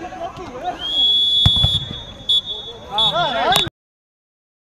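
A referee blows a long whistle blast.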